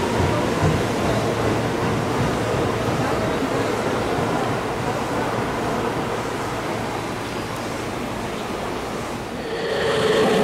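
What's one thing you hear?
A train rumbles slowly into a station.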